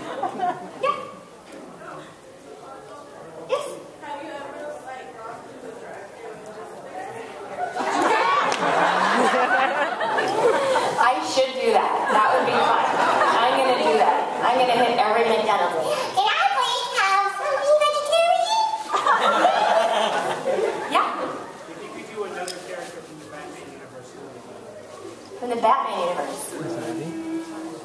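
A young woman speaks with animation through a microphone in a large echoing hall.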